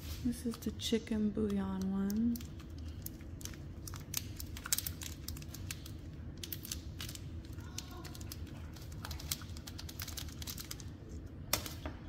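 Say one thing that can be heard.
Foil wrapping crinkles and rustles as it is unwrapped.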